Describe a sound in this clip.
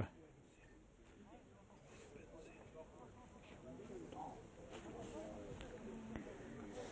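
Men call out and talk across an open outdoor pitch.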